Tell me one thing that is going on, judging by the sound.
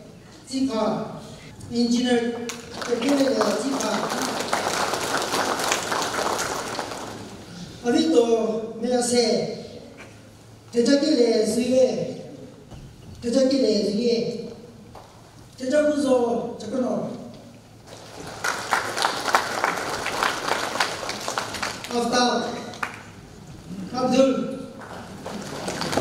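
A man speaks in short phrases over loudspeakers in a large echoing hall.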